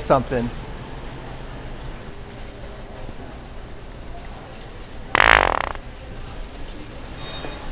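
A shopping cart rattles as it rolls across a hard floor.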